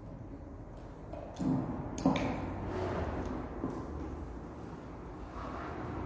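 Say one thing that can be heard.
A man's footsteps tap across a hard floor in an echoing room.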